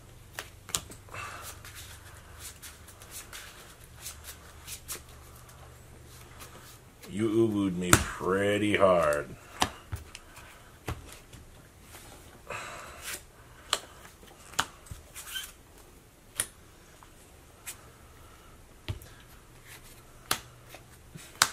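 Playing cards tap and slide softly onto a cloth mat.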